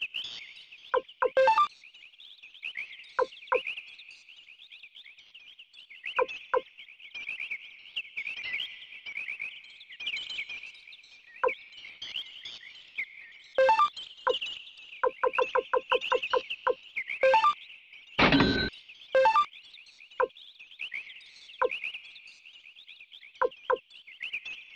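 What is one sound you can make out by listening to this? Short electronic beeps blip as a menu cursor moves.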